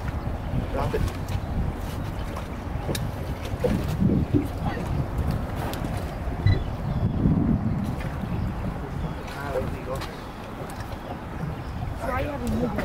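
Wind rumbles steadily outdoors on open water.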